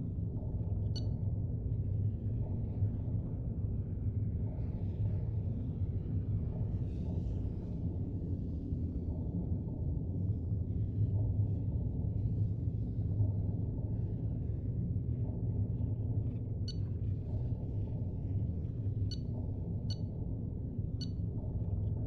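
A short electronic chime sounds as a menu selection changes.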